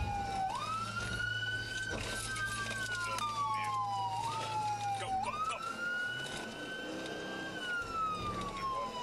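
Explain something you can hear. A police siren wails close by, rising and falling.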